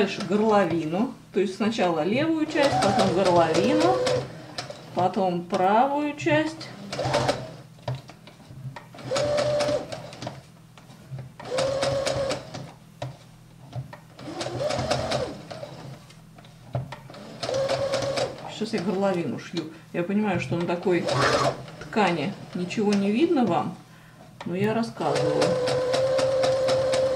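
A sewing machine whirs in short bursts as it stitches.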